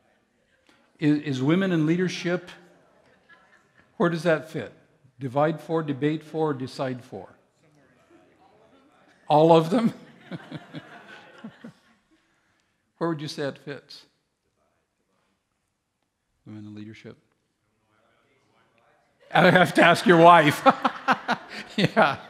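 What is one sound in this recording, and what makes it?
A man speaks calmly into a microphone in a large echoing hall, pausing often.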